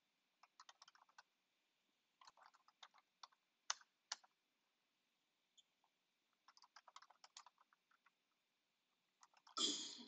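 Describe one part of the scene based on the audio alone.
Keyboard keys clatter in quick bursts of typing.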